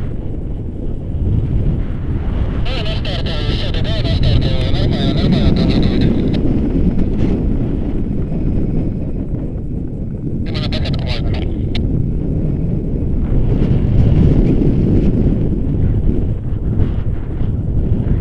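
Strong wind buffets the microphone outdoors high up.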